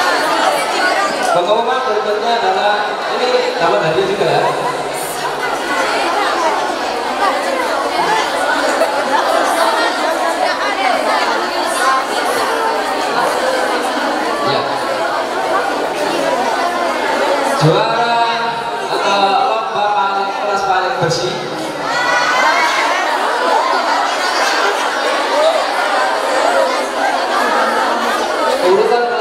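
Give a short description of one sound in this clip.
A man speaks steadily into a microphone, heard through loudspeakers in an echoing room.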